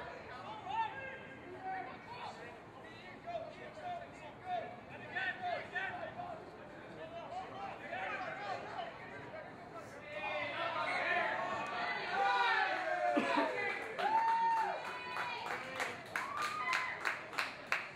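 Rugby players shout and call to each other across an open field.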